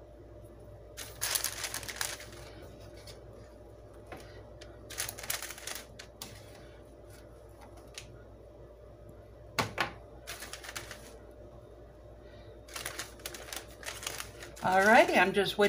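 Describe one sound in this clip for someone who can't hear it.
Parchment paper rustles and crinkles in bursts.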